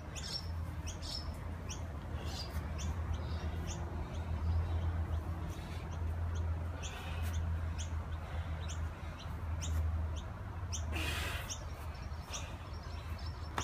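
A man's feet thud softly on grass as he steps into lunges.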